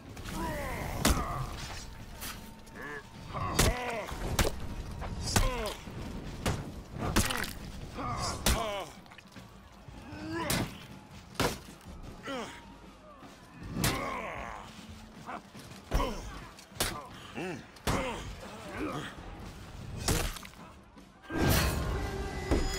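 Steel weapons clash and strike armour in a close fight.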